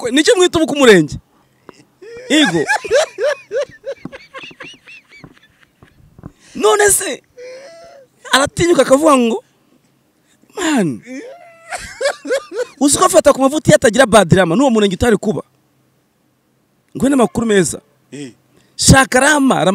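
A young man speaks with animation into a microphone, close by.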